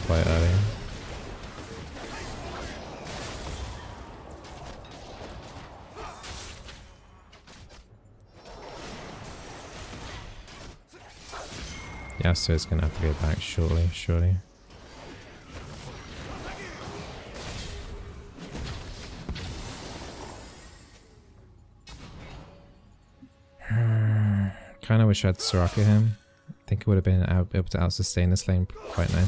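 Fantasy battle sounds of spells and clashing weapons play.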